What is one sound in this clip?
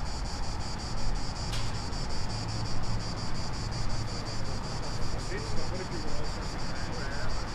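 A truck engine idles in the distance.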